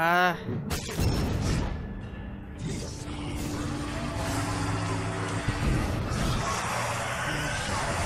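Explosions boom and rumble.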